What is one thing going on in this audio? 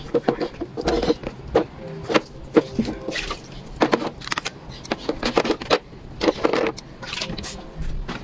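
Plastic baskets clatter and knock as they are handled up close.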